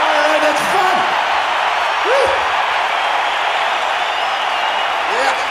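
A huge crowd roars and cheers steadily in a vast open-air stadium.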